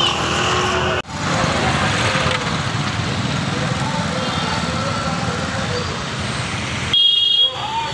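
Motorbike engines idle and pass nearby.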